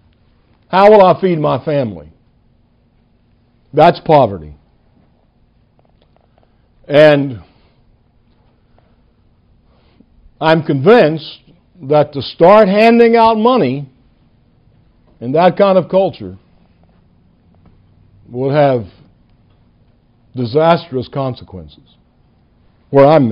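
An elderly man speaks with animation into a microphone, in short bursts with pauses.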